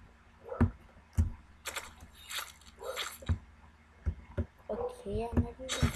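Blades slash and thud into bodies again and again.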